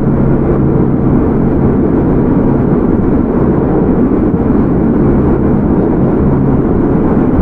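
A train rumbles along the tracks with a steady low roar.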